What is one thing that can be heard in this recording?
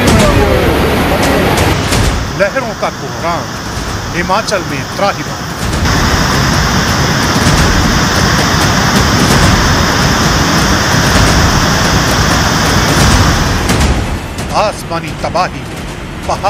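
Floodwater rushes and roars loudly.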